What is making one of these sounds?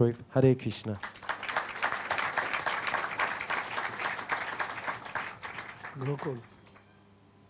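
A crowd applauds.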